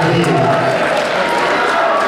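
Volleyball players shout and cheer together in a large echoing hall.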